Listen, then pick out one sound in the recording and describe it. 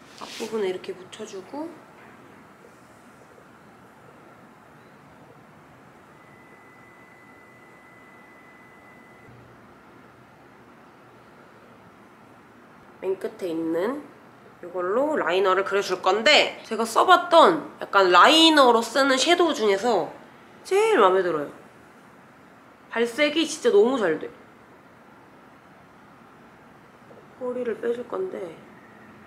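A young woman talks calmly and close to a microphone, in short bursts with pauses.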